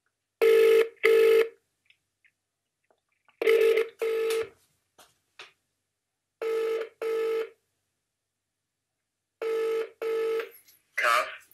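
A phone's ringback tone beeps in repeated pairs through a loudspeaker.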